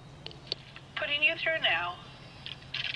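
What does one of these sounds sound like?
A woman's voice answers briefly through a telephone line.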